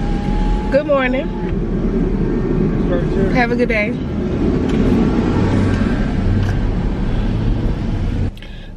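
A car engine hums low and steady, then cuts off.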